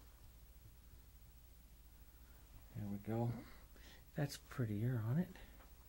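A paintbrush dabs softly on canvas.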